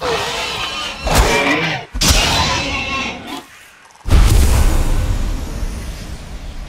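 A weapon strikes a creature with heavy thuds.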